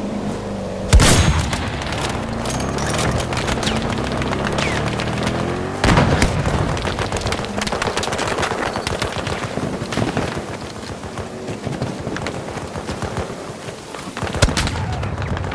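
Loud gunshots crack and boom close by.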